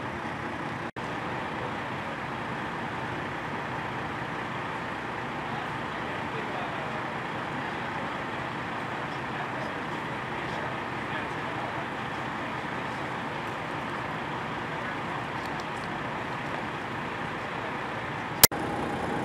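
Men talk quietly at a distance outdoors.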